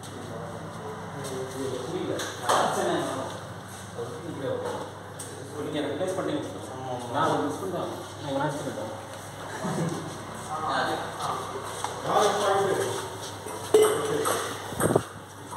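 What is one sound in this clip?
Men talk casually nearby.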